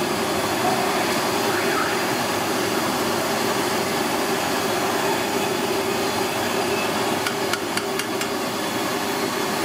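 Hot oil sizzles and bubbles steadily.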